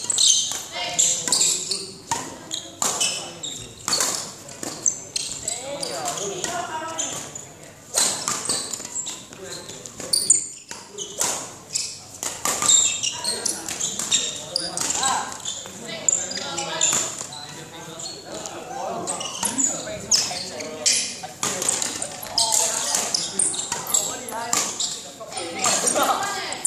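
Sneakers squeak and thump on a hard court floor in an echoing hall.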